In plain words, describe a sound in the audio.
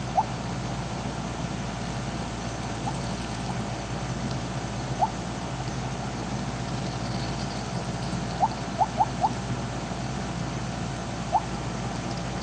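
Short electronic blips sound now and then from a video game.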